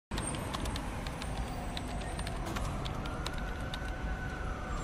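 Fingers tap quickly on a laptop keyboard.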